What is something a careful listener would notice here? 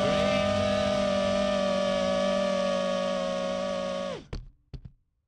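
A drone's motors whine steadily, then cut out.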